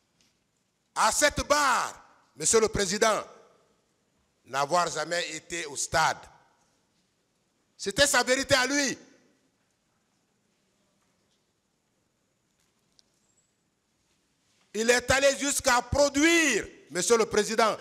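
A man speaks with emphasis into a microphone, in bursts with long pauses.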